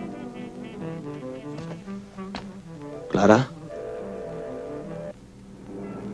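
A man speaks calmly into a phone.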